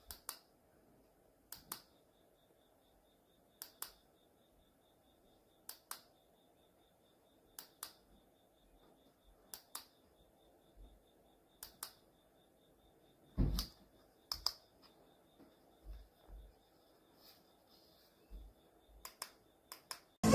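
A ceiling lamp clicks softly each time its light changes.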